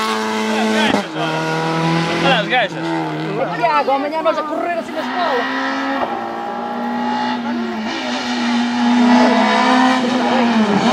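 A second rally car engine revs high and roars through the gears as the car approaches and passes.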